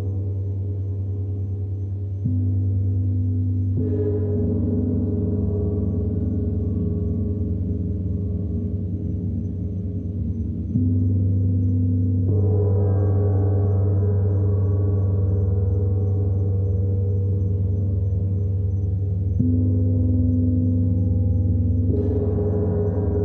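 A large gong hums with a deep, swelling drone.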